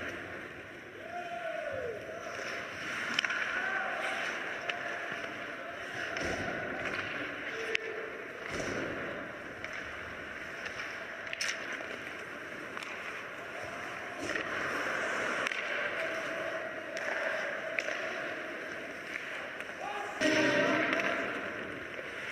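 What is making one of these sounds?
Ice hockey skates scrape and carve across the ice in a large arena.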